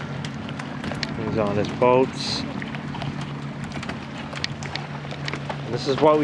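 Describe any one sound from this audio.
Water laps gently against a dock.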